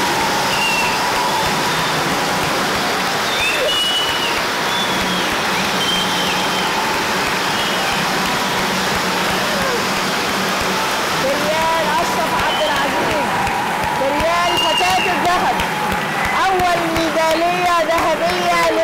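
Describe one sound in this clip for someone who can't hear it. Spark fountains hiss and crackle steadily.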